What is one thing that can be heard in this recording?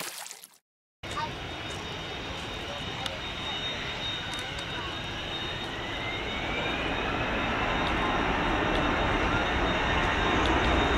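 A jet engine roars steadily and grows louder as the plane taxis past.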